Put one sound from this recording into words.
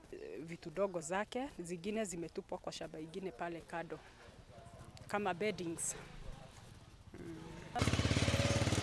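A woman speaks calmly and close into a microphone.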